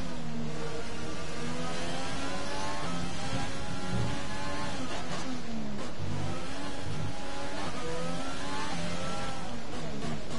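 A racing car engine screams loudly, its pitch rising and dropping with each gear change.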